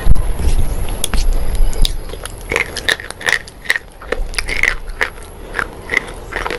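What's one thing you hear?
A woman bites and crunches brittle chalk close to a microphone.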